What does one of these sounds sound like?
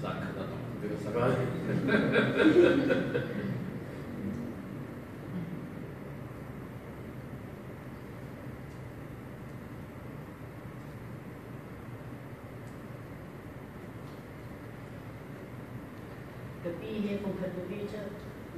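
Young women laugh and chat nearby.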